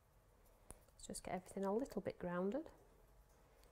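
A woman speaks briefly and animatedly, close by.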